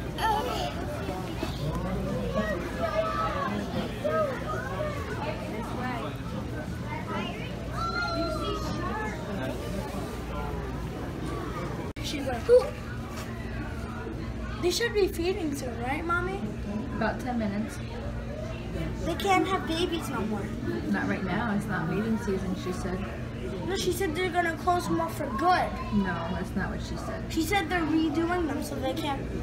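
A small child babbles and chatters close by.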